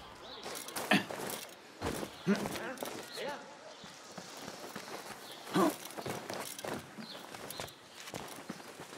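Quick footsteps thud across stone and wooden rooftops.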